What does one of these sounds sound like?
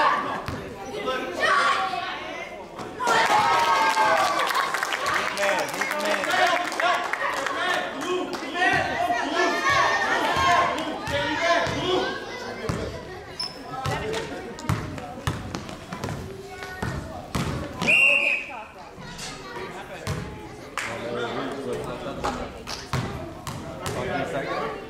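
Children shout and call out.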